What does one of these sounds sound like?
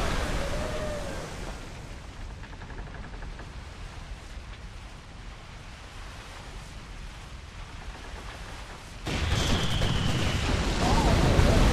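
Cannons boom in a sea battle.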